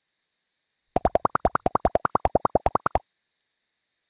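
Short electronic blips sound in quick succession as text types out.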